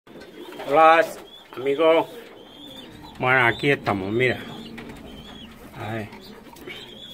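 Pigeons coo close by in short bursts.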